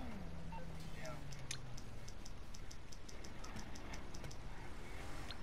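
A phone menu clicks quickly as it is scrolled.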